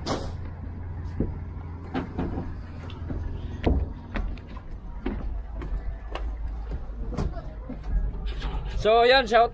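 Footsteps thud on a wooden boat deck.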